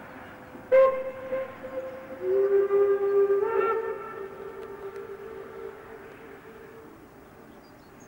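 A steam locomotive's whistle blows loudly in two long blasts, heard from a distance.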